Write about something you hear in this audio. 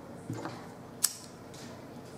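A lighter clicks.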